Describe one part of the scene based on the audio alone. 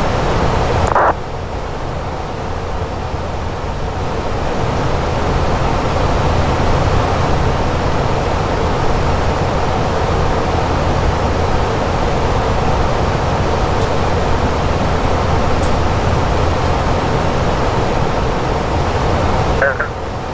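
Jet engines roar in a steady low rumble.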